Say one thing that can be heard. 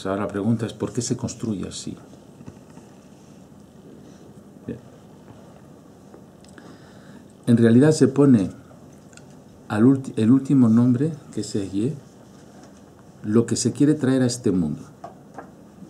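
A middle-aged man speaks calmly and slowly close to a microphone, pausing between phrases.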